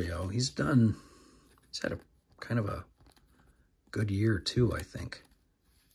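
A plastic card sleeve crinkles and rustles.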